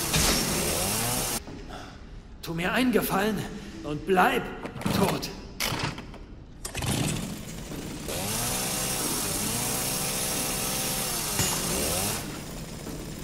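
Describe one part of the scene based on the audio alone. A chainsaw engine revs and idles.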